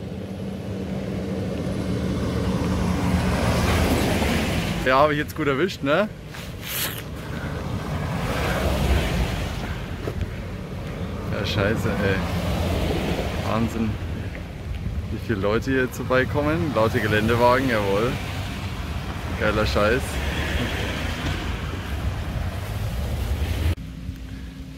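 Off-road vehicles drive past one after another with rumbling engines.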